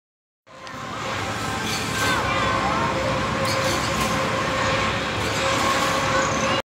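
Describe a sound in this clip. Riders scream on a spinning ride.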